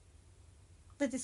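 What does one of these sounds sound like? A young woman starts speaking close by.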